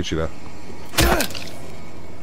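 A metal pipe strikes something with a sharp thud.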